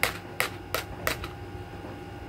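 A baby taps a small plastic cup against a surface.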